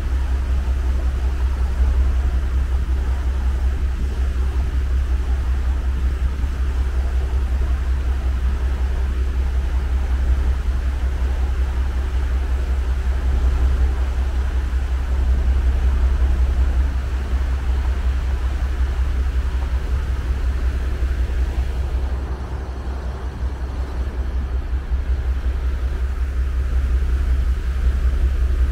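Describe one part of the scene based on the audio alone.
Wind rumbles steadily over the microphone outdoors.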